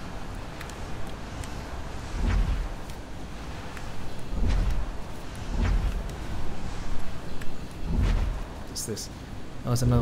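Footsteps crunch slowly over dry leaves and twigs.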